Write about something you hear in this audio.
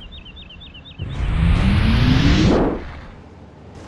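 A loud rush of wind sweeps past during a huge leap.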